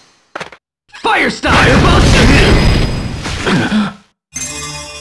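A fireball roars and bursts with a crackling blast.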